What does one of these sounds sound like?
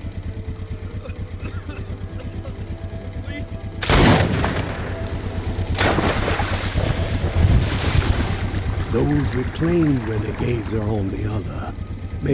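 Water splashes softly against a small wooden boat.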